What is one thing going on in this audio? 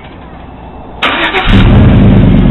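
A truck engine cranks and starts with a sudden roar.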